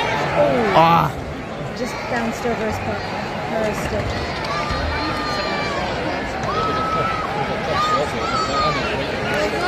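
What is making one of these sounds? A large crowd murmurs and chatters in a big echoing arena.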